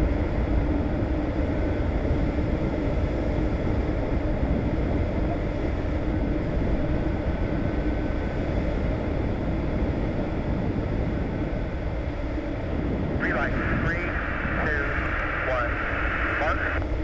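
A small plane's engine drones steadily, heard from inside the cockpit with rushing wind.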